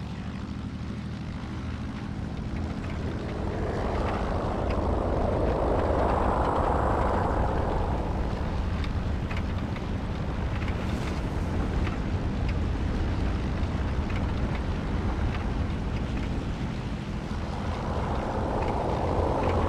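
Wheels rumble and bump over rough ground.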